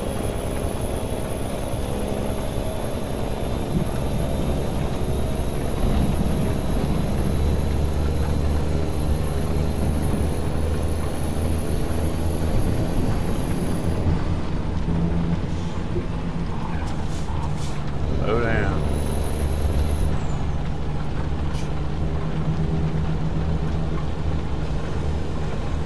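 A truck engine rumbles steadily while driving.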